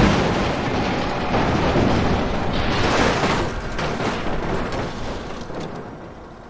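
Metal crunches and scrapes as vehicles are smashed in a crash.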